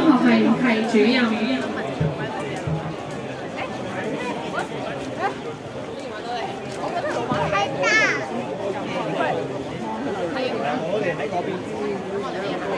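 A crowd of people chatter outdoors all around.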